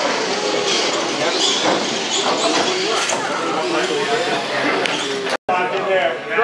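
A small electric motor whines as a toy car drives.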